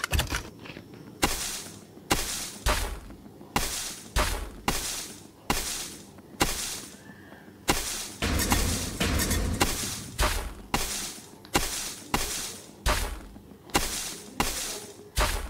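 A video game plays short digging and reward sound effects again and again.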